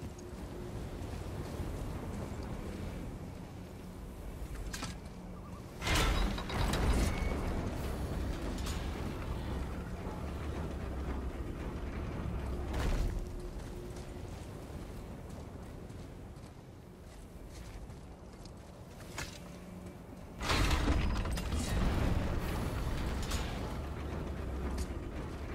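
Heavy footsteps thud on stone.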